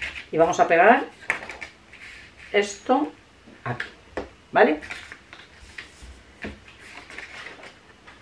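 Paper rustles and slides as sheets are handled.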